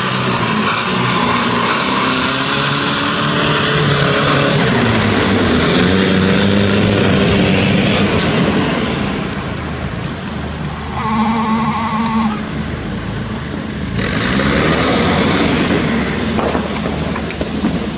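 A truck engine roars and revs as it drives through water.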